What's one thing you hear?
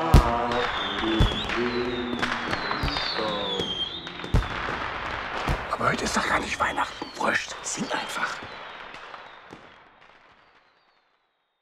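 Fireworks burst with loud booms and crackles.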